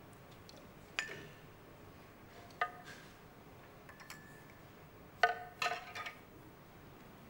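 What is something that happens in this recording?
Dishes clink as a man sets a table.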